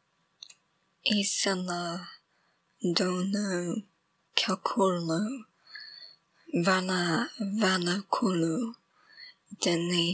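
A young woman speaks quietly and close up, in short bursts.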